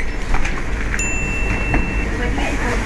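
A checkout scanner beeps briefly.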